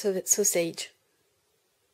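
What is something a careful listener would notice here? A woman speaks in a high, squeaky put-on voice.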